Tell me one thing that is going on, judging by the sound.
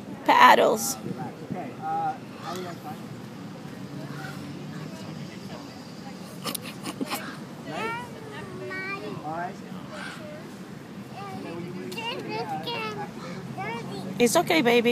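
Children and adults talk and call out nearby outdoors.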